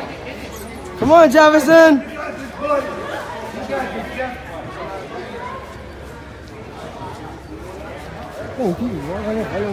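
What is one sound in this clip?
A woman shouts loudly nearby.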